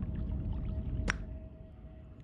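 A short menu sound effect plays as a game menu opens.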